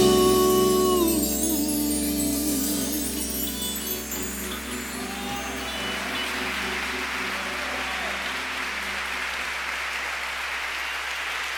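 A band's final electric guitar chord rings out and slowly fades.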